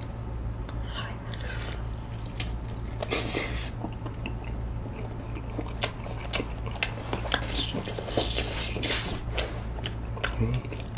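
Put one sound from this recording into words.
A man chews food wetly, close to a microphone.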